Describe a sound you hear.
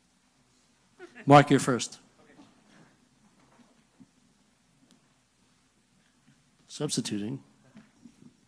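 A middle-aged man speaks briefly through a microphone.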